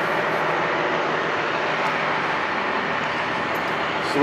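A metal cabinet door swings open.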